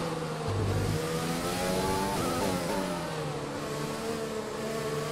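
A racing car engine revs back up out of the corner.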